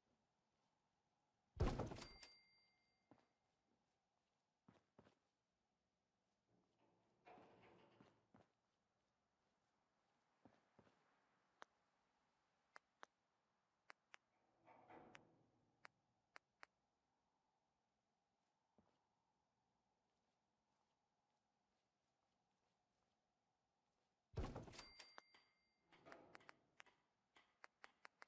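Short menu clicks tick now and then.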